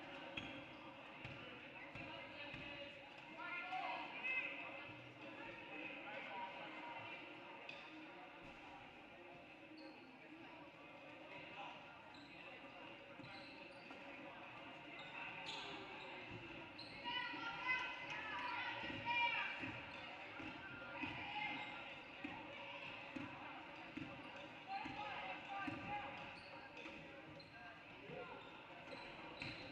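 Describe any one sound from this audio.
Spectators murmur and call out from the sidelines.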